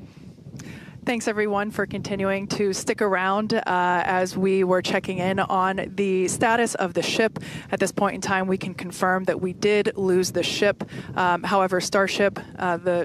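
A woman speaks with animation through a headset microphone.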